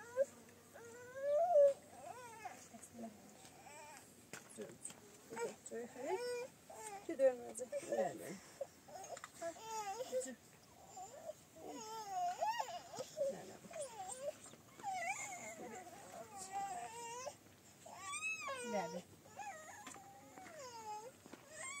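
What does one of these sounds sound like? Young children talk and chatter nearby.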